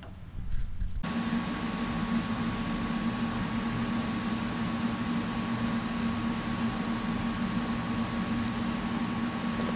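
A welder crackles and buzzes steadily.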